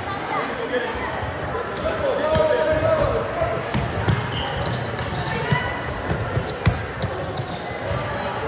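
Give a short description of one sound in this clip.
A crowd of spectators murmurs and calls out in a large echoing hall.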